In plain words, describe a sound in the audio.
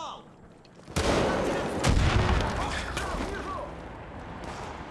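An explosion booms loudly nearby.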